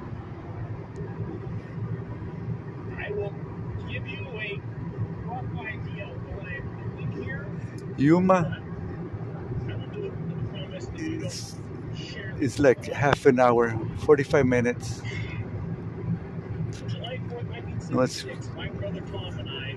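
A car's engine and tyres hum steadily inside the car at highway speed.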